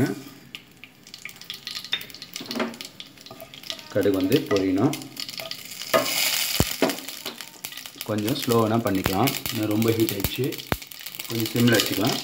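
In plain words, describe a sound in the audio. Seeds pop and crackle in hot oil.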